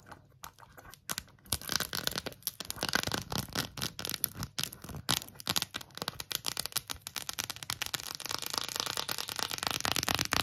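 Long fingernails tap and scratch rapidly on a hard plastic case, close up.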